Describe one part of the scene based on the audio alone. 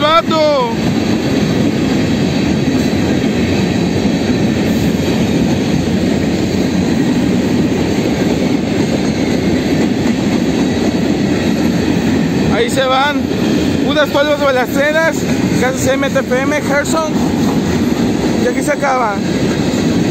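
A freight train rumbles and clatters past close by.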